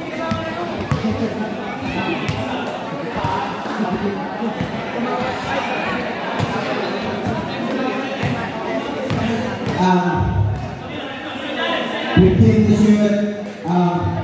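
A crowd of young people chatters and calls out in a large echoing hall.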